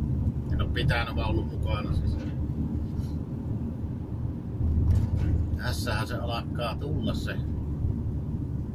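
A car engine rumbles steadily from inside the car as it drives along a road.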